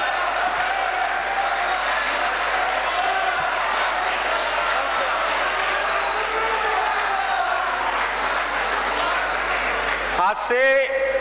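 An audience murmurs and chatters in a large room.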